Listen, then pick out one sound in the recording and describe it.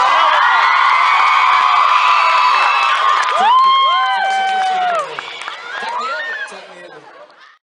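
A crowd of young fans screams and cheers.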